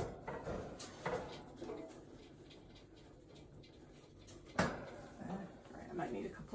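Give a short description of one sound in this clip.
A wire cage rattles and clinks as items are moved inside it.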